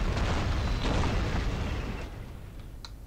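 Tank guns fire and shells explode with a heavy rumble.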